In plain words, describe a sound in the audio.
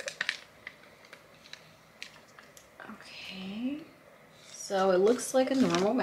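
A foil packet crinkles in a woman's hands.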